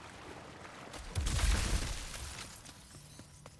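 Water splashes as someone runs through it.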